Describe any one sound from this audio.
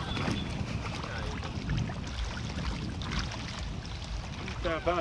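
Water splashes and trickles as hands dip cloth into shallow water.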